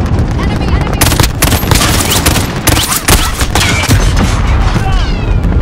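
Gunshots crack in rapid, loud bursts.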